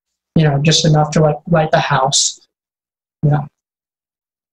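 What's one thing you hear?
A man speaks briefly through an online call microphone.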